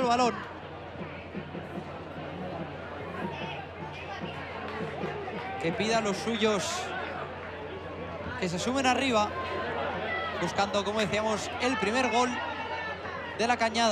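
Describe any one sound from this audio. Spectators shout and call out from the sidelines outdoors.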